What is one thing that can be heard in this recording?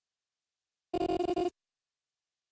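A short electronic chime sounds once.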